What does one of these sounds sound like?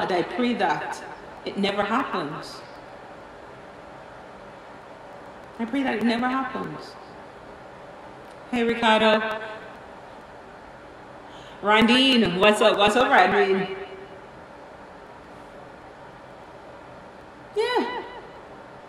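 A woman sings in short phrases into a close microphone.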